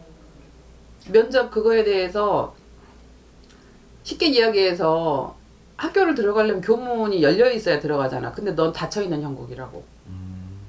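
A middle-aged woman speaks calmly and close by, in bursts.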